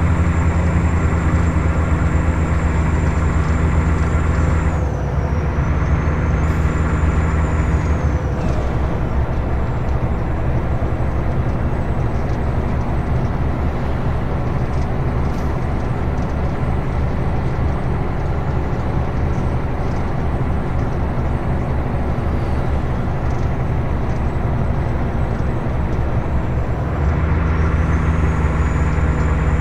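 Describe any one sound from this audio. Tyres rumble on a road.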